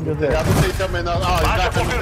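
A heavy punch thuds against a body.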